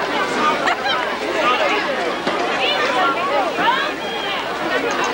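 Football players shout calls across an open field.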